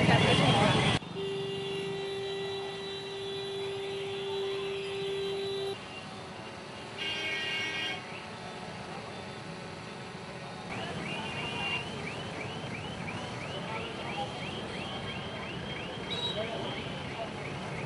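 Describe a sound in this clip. Street traffic hums and rumbles in the background.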